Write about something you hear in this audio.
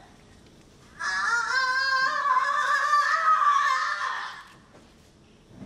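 A young woman wails and screams loudly.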